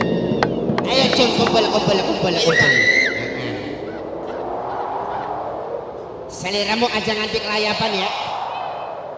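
A crowd of men and women chatter nearby outdoors.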